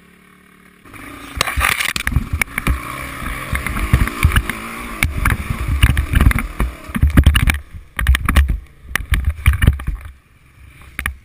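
A dirt bike engine roars and revs up close.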